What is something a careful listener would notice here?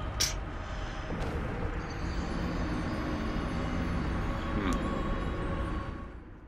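A man speaks with amusement into a close microphone.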